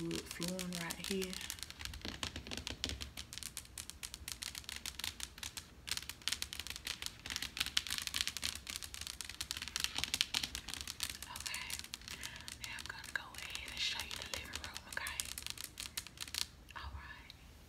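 Fingernails scratch and tap quickly on fuzzy slippers, close up.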